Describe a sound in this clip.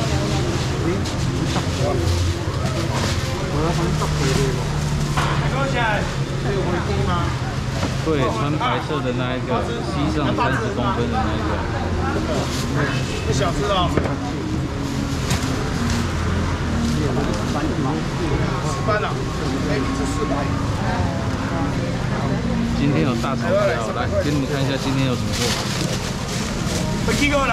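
Men and women talk with animation nearby in a busy, echoing room.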